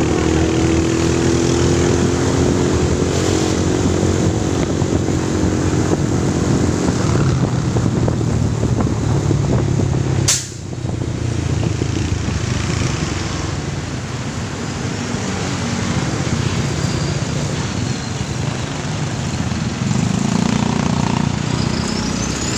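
An engine hums steadily as a vehicle drives along a road.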